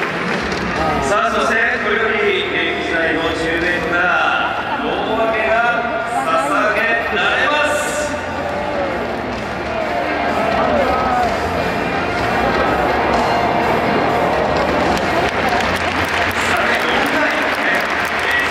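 A group of young men cheer and shout together.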